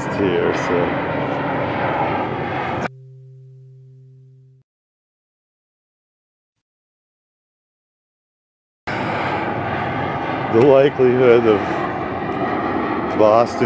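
A jet airplane roars loudly overhead.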